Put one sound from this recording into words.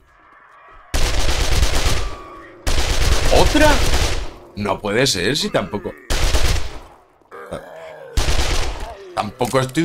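Rapid gunfire bursts out in loud, sharp volleys.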